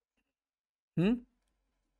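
A middle-aged man briefly says a word close to a microphone.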